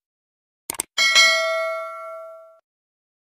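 A bell chimes brightly and rings out, fading away.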